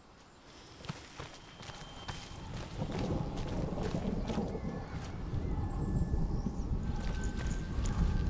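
Footsteps tread over leafy forest ground.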